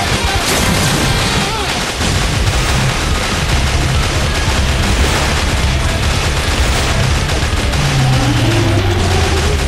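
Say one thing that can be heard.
Gunfire and blasts from a game rattle rapidly throughout.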